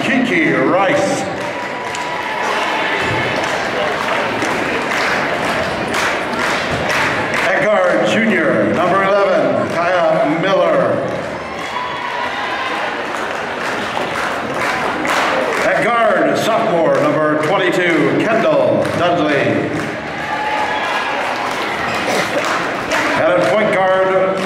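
Young women on the court shout and cheer together.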